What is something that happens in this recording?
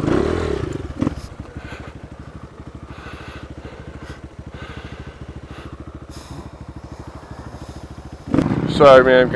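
A dirt bike engine idles with a low, steady putter.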